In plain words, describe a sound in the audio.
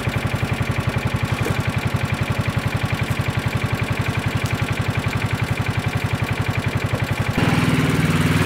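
A small utility vehicle engine idles nearby with a steady rumble.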